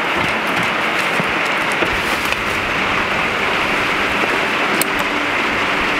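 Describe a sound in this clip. An umbrella rustles and flaps as it opens.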